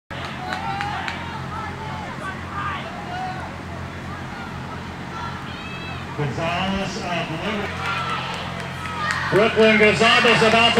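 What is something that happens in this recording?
Spectators shout and cheer nearby outdoors.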